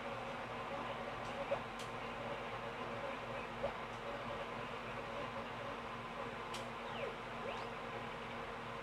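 Cheerful video game music plays from a television speaker in a room.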